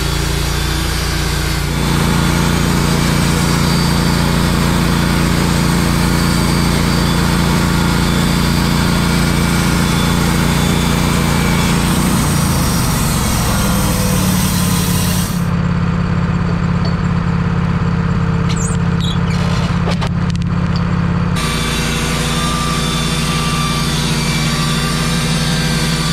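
A sawmill engine runs with a steady, loud drone.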